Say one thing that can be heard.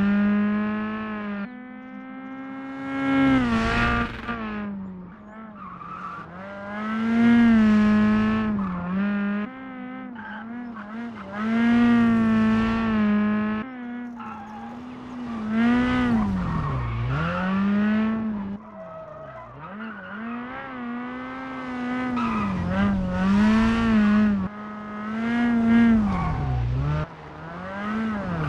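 A turbocharged four-cylinder rally car engine revs hard and shifts through the gears.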